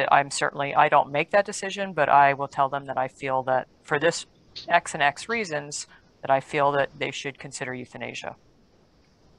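An older woman speaks calmly through a headset microphone on an online call.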